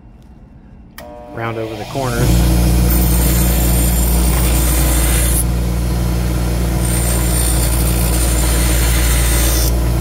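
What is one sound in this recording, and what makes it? A bench grinder motor whirs up to speed and hums loudly.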